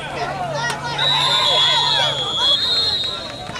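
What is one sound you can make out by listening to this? A referee's whistle blows shrilly.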